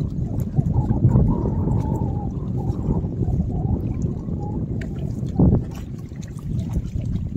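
Wind blows steadily into a microphone outdoors.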